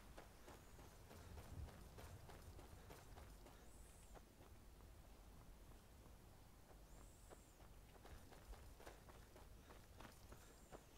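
Footsteps crunch over grass and stones at a steady walking pace.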